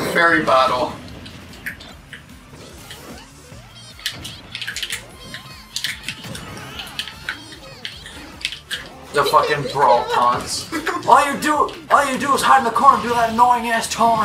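Fighting game hits and zapping effects crackle in quick bursts.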